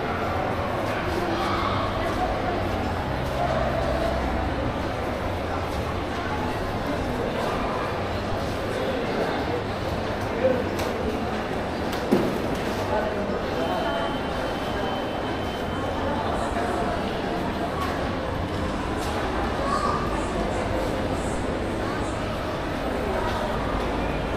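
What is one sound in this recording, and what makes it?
A low murmur of distant voices echoes through a large indoor hall.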